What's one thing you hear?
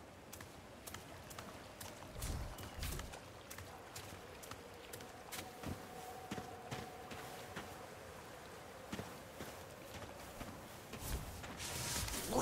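Footsteps tread at a steady walking pace on stone and dirt.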